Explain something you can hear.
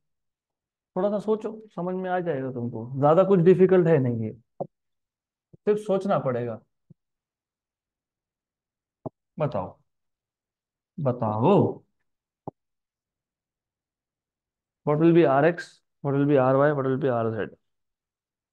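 A man speaks calmly through a microphone, explaining in short phrases.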